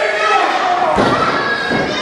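A body slams heavily onto a wrestling ring mat.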